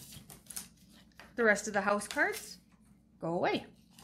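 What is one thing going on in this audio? Small plastic game tokens clink together as a hand sorts through them.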